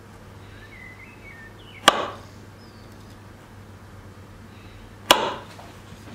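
A knife cuts through soft dough.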